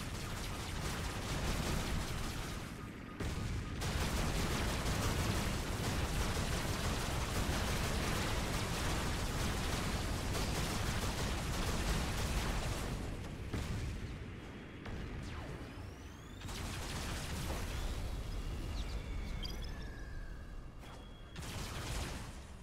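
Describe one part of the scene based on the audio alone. A robot's engine rumbles steadily.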